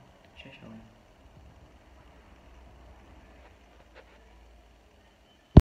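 A hand rubs against the microphone with a soft, muffled rustle.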